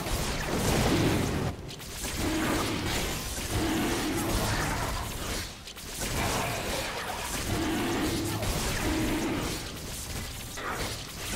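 Magical attacks whoosh and crackle as game creatures fight a large monster.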